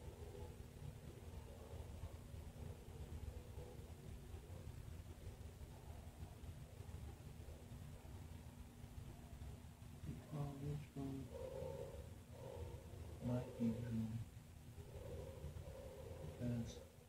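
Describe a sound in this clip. A hand strokes a dog's fur softly.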